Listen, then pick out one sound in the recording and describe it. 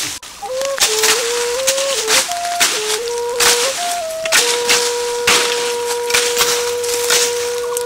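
Leafy branches rustle and snap as they are pulled and broken.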